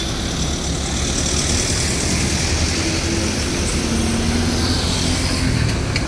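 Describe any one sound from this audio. A motorcycle engine buzzes past.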